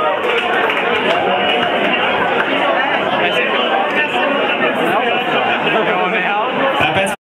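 A rock band plays loudly through amplifiers in a small room.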